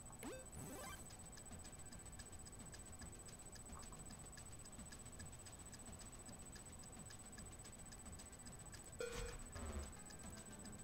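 An arcade machine plays rapid electronic ticking and beeps.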